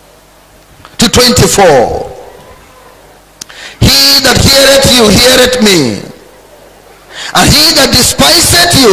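A man preaches loudly and with fervour through a microphone, in bursts with pauses.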